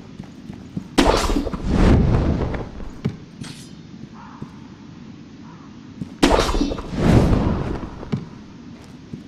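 A grappling rope whips and whooshes through the air.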